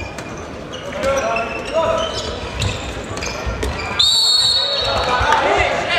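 A handball bounces on the floor.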